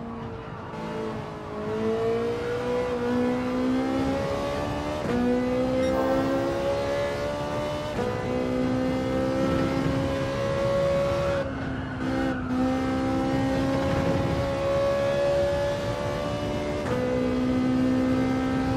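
A racing car engine revs high and climbs in pitch, dropping briefly at each gear change.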